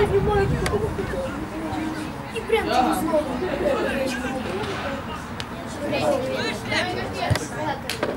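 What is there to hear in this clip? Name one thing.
Men talk casually close by.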